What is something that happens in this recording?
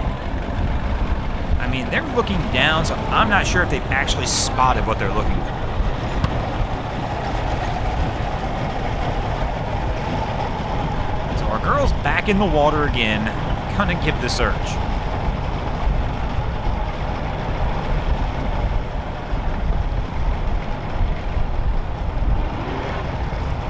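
A pickup truck engine rumbles as it pulls a boat up a ramp.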